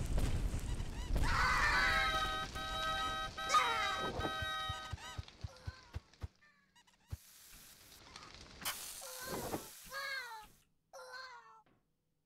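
A man shouts and screams loudly into a close microphone.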